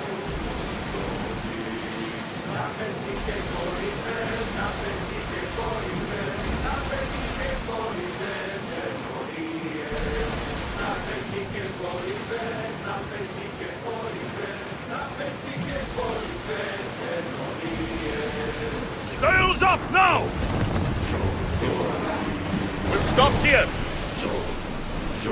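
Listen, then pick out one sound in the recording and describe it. Water splashes and rushes against a ship's hull.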